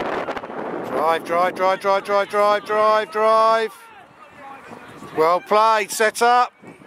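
Young players shout and call out loudly across an open field.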